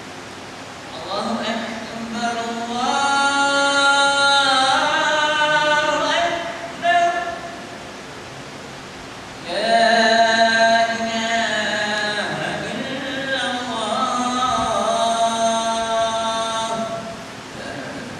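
A man chants melodically into a close microphone, in a large echoing hall.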